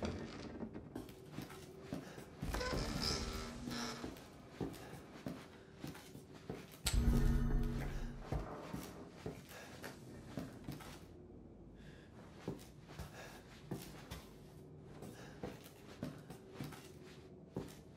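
Slow footsteps thud on wooden floorboards.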